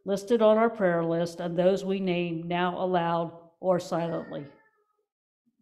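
An older woman sings clearly through a microphone, then falls almost silent.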